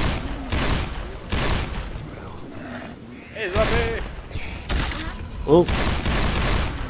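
Zombies growl and shriek.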